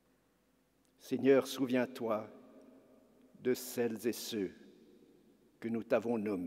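An elderly man speaks slowly and solemnly into a microphone, echoing in a large hall.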